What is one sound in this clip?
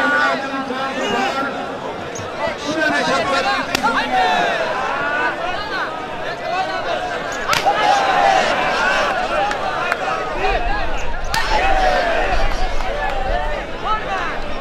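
A large outdoor crowd cheers and shouts.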